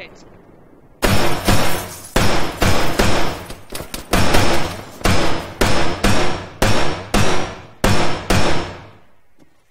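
Rifle shots fire in bursts, loud and close, with echoes.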